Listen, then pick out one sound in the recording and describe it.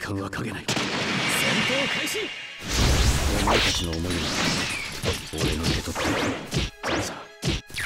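Rapid whooshing hits and impacts burst out.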